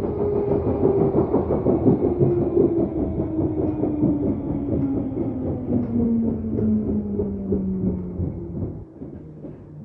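A train's motor whines and drops in pitch as the train slows down.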